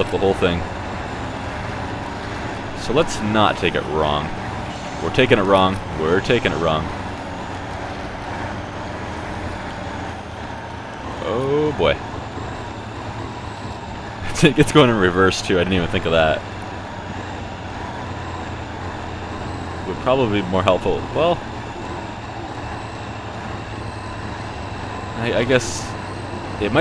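A heavy truck engine rumbles steadily at low revs.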